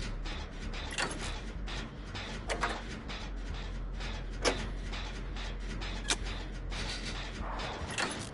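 Metal parts click sharply now and then.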